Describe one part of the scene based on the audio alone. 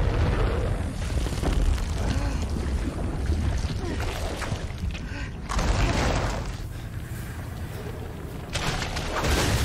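A huge creature roars and growls deeply.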